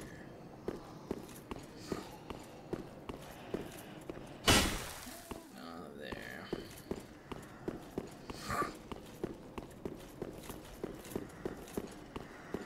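Armored footsteps clank quickly on stone.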